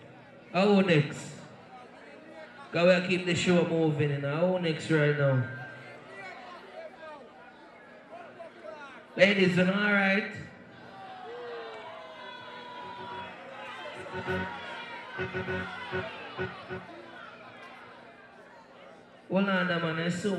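Music plays through loudspeakers.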